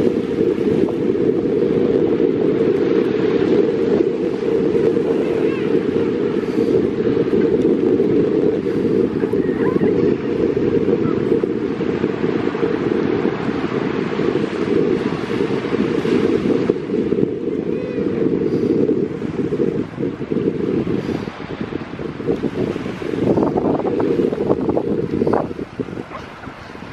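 Waves wash gently onto a beach in the distance.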